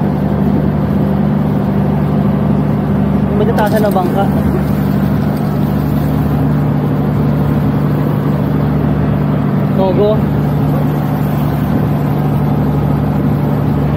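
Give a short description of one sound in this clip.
Water rushes along the hull of a moving boat.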